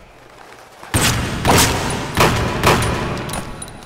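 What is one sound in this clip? A pistol fires several loud shots that echo off stone walls.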